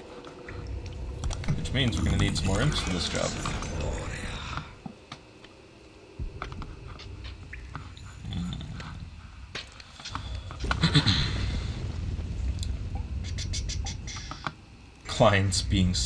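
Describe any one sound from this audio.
A young man talks casually into a headset microphone, close up.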